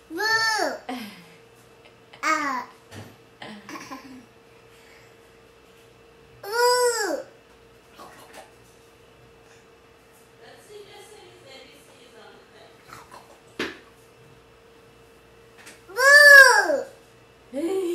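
A small child squeals loudly and happily close by.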